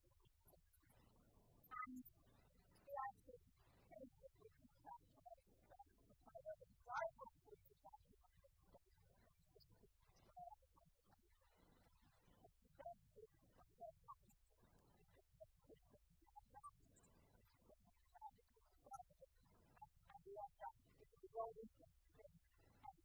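A woman lectures calmly through a microphone.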